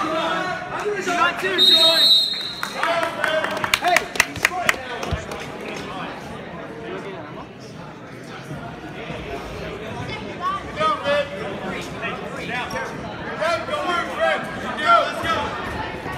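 A crowd in a large echoing hall cheers and shouts with excitement.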